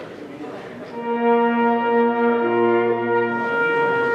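A brass band plays a loud sustained chord.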